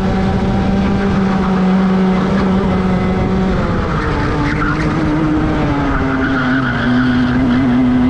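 A go-kart engine drones loudly up close, its pitch dropping as it slows.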